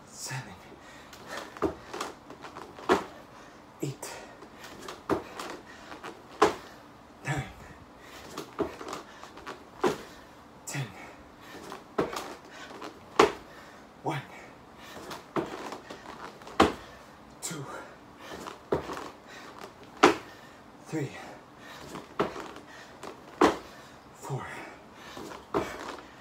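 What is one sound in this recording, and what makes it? Hands and feet thump on a floor mat in a steady rhythm.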